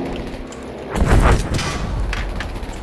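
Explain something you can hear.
A plane crashes with a loud, booming impact.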